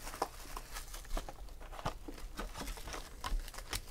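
A cardboard box flap scrapes open.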